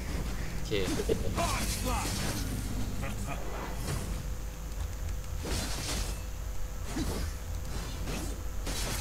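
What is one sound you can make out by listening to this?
Magical attacks whoosh and crackle in quick bursts.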